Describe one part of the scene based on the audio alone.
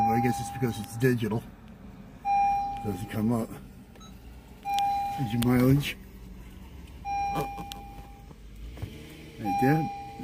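A car's warning chime beeps repeatedly at a steady pace.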